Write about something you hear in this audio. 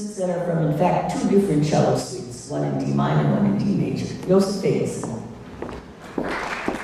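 An older woman speaks calmly into a microphone in a large hall.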